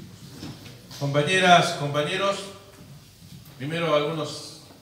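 A man speaks calmly through a microphone and loudspeakers.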